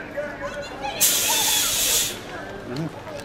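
Gas hisses out in a loud burst.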